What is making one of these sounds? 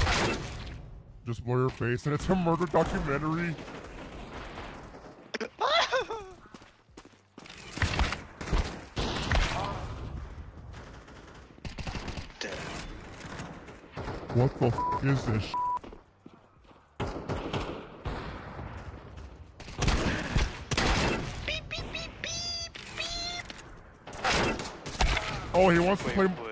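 Rapid gunfire cracks in short bursts.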